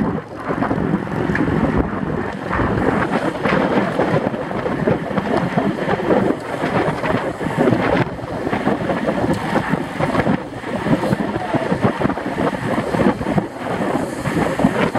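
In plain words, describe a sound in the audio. Wind buffets loudly and steadily, as when riding fast outdoors.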